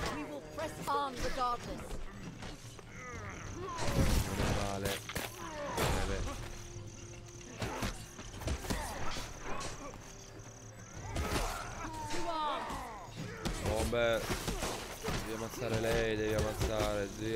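Swords clash and thud in a fight.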